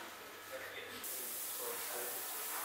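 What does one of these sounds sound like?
Hot syrup sizzles on a tray of pastry.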